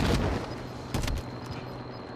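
Feet thud on hard ground on landing.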